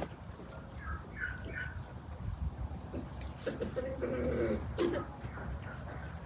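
Hens cluck softly outdoors.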